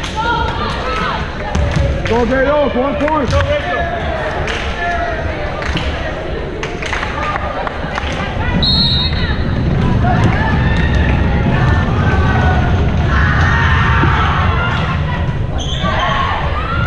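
Young women players call out and shout to one another across an echoing gym.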